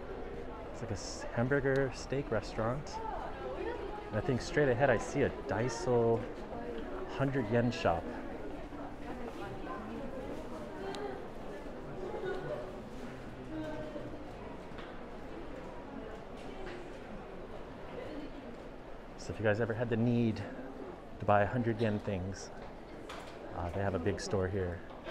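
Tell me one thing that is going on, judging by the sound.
Young women chat nearby.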